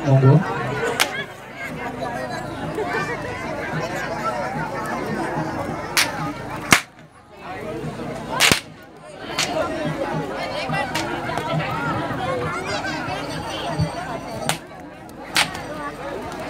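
A whip cracks sharply.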